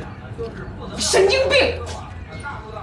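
A woman shouts angrily.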